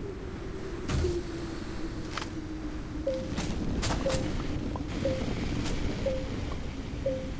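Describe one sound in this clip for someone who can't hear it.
A tool hums and crackles as it digs into the ground.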